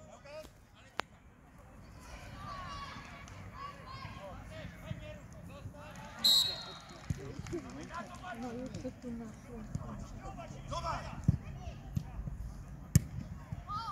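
A football is kicked with a dull thump.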